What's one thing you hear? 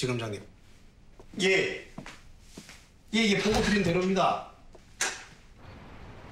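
A young man shouts with agitation nearby.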